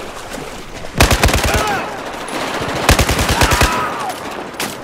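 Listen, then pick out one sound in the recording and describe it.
Automatic gunfire rattles in quick bursts.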